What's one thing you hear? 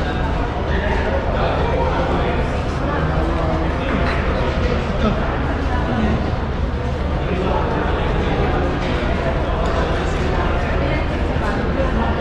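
Spoons clink against plates.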